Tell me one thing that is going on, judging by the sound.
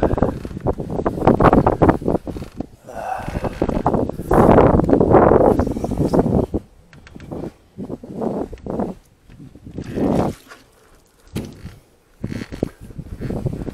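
A hand scrubs and rubs against a vehicle's metal roof.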